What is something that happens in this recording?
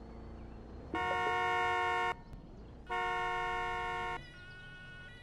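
A car horn honks loudly twice.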